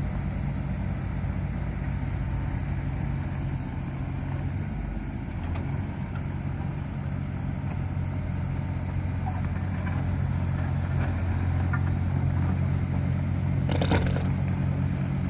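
A small excavator's diesel engine rumbles steadily close by.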